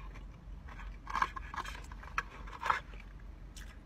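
A woman slurps noodles loudly.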